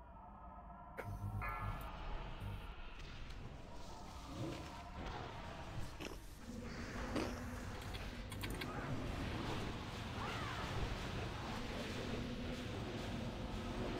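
Game spells crackle and whoosh during a fight.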